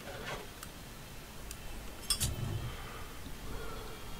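A lighter clicks and flicks open.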